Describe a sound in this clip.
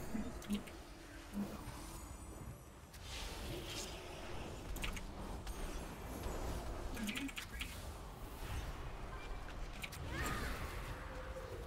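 Game spell effects whoosh and crackle during a battle.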